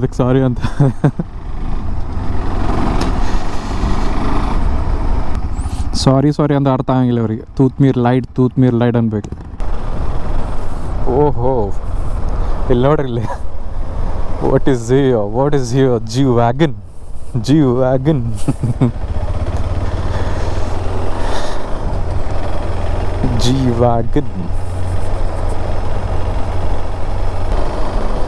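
A motorcycle engine hums and revs up and down while riding.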